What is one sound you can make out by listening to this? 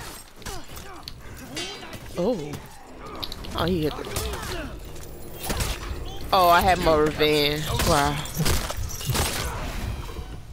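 Swords and axes clash and clang in a fight.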